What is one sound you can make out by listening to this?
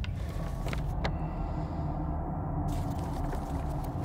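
A paper map rustles as it is unfolded.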